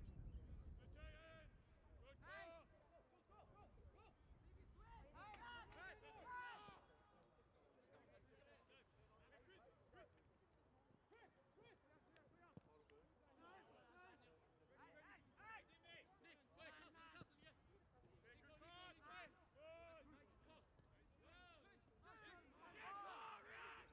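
Young players shout to one another outdoors across an open field.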